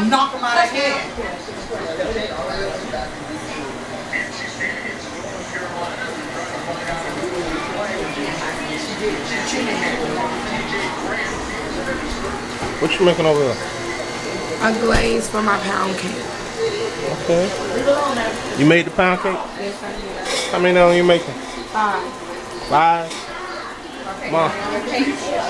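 Women talk and laugh close by with animation.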